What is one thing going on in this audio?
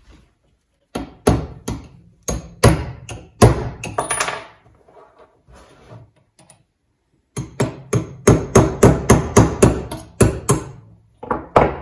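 A metal hammer taps sharply on a metal tool.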